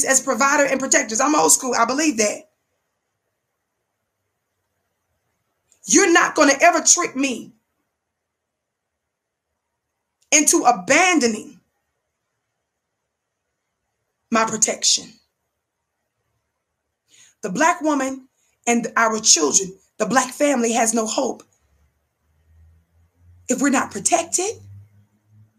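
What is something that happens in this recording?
A young woman speaks with animation close to a microphone, in bursts with pauses.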